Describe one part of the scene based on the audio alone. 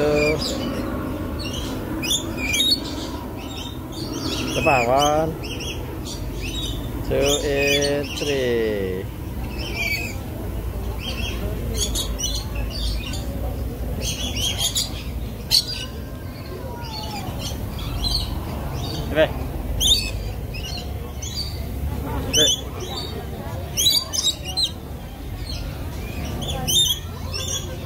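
Parrots screech and chirp loudly nearby, outdoors.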